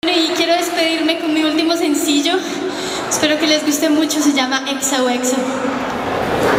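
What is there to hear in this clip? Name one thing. A young woman sings into a microphone over loudspeakers, with echo.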